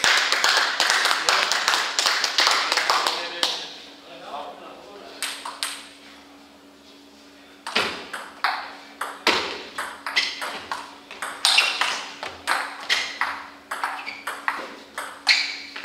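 A ping-pong ball clicks back and forth between paddles and a table in a rapid rally.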